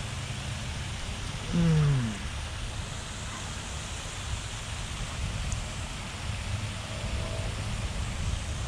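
Wind rumbles across an outdoor microphone.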